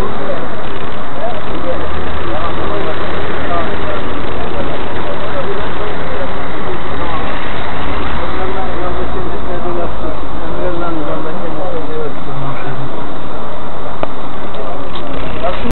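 A crowd of men murmurs and talks all around, close by, outdoors.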